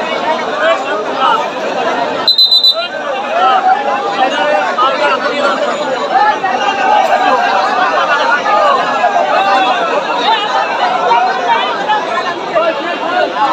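A large outdoor crowd chatters and shouts loudly.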